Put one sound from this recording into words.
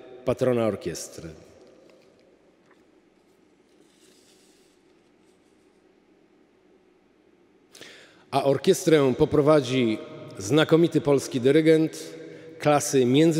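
A middle-aged man speaks calmly into a microphone in an echoing hall, with pauses.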